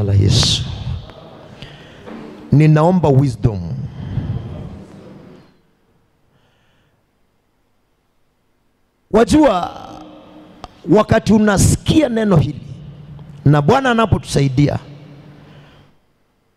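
A man preaches forcefully into a microphone in an echoing hall, with pauses.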